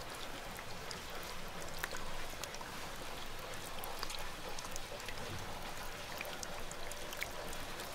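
Hands squeeze and squish raw meat with soft, wet sounds.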